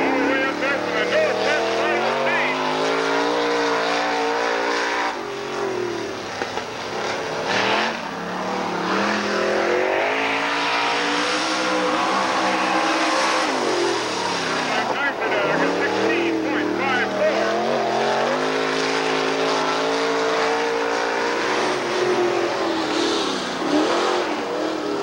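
A race car engine roars loudly, revving up and down.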